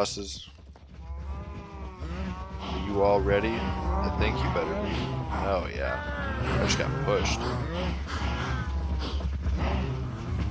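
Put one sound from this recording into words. Many cows moo over one another, loud and close.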